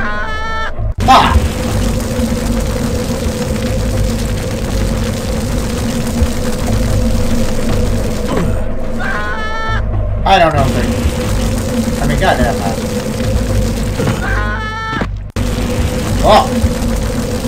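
An explosion bursts loudly and crackles.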